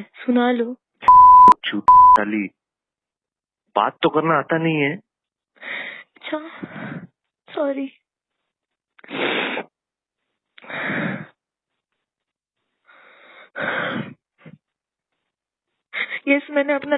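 A young woman speaks over a phone line, with pauses.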